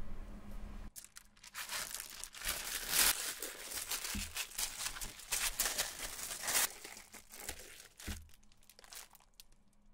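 Plastic film crinkles and rustles under hands.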